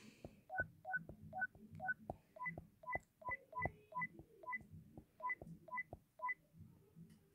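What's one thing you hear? Short electronic keypad beeps sound one after another.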